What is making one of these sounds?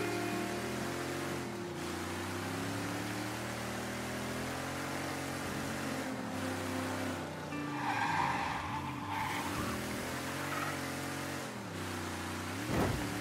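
A car engine revs and drones steadily, dropping briefly at each gear shift.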